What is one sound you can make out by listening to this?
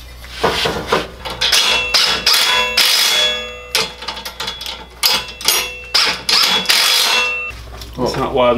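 Metal parts clink and clank as a shaft is fitted.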